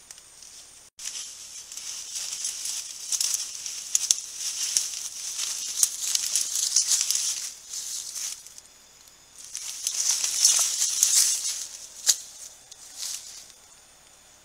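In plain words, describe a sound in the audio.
Leaves and undergrowth rustle and crackle as a large animal pushes through them close by.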